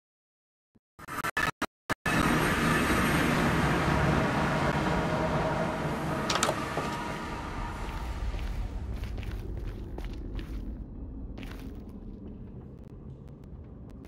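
A low, eerie whooshing hum fills the air and slowly fades.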